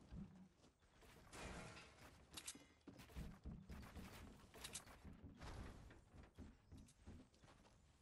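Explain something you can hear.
Wooden walls and ramps clatter into place in a video game.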